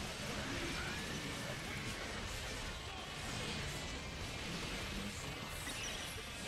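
Magic blasts and fiery explosions burst in a game fight.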